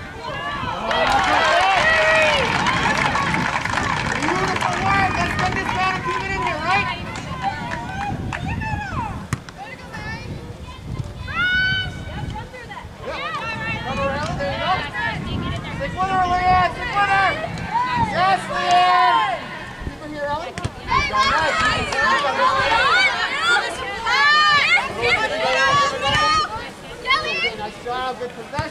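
Young women shout and call to each other outdoors.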